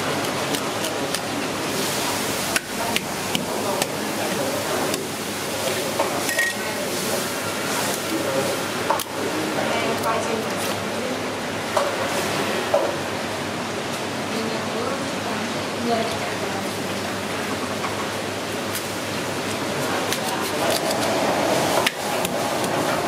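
A cleaver chops down onto a wooden board with sharp knocks.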